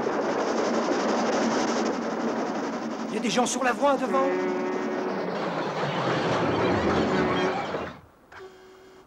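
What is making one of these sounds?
A train rumbles loudly along the tracks.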